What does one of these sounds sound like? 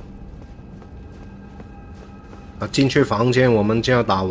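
Footsteps patter on stone steps.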